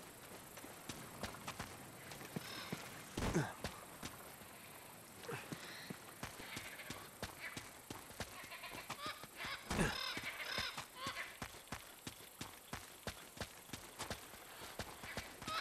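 Footsteps thud and rustle on soft ground and leaves.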